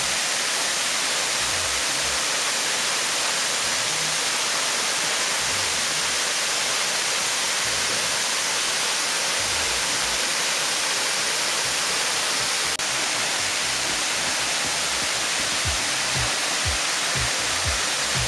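A waterfall roars steadily, with water crashing onto rocks close by.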